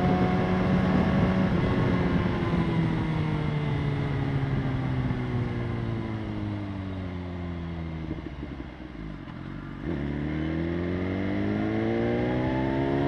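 A motorcycle engine hums as the rider eases off, its pitch slowly falling, then revs up and rises again.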